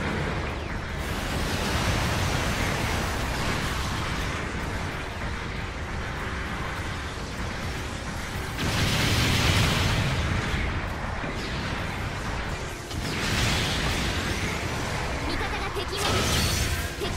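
A robot's jet thrusters roar steadily.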